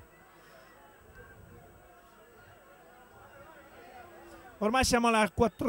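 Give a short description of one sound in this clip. A crowd murmurs faintly in the distance outdoors.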